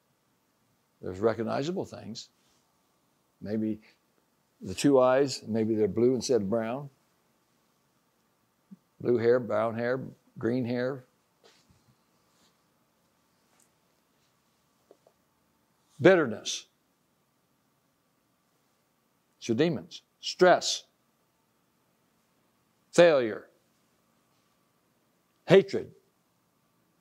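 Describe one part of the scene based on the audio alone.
An elderly man speaks calmly nearby, with long pauses.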